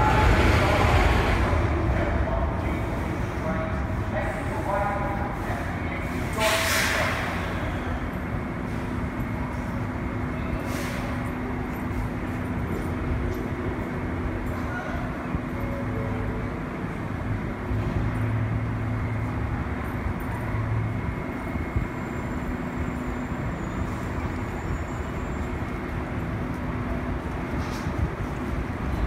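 A subway train rumbles and clatters along the tracks.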